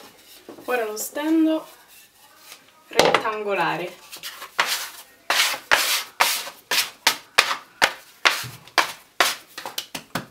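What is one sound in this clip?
Hands knead and slap dough against a board with rhythmic thumps.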